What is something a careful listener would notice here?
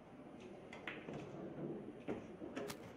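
Pool balls click against each other.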